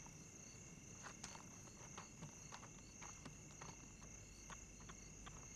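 A hyena's paws scuff softly on rocky ground.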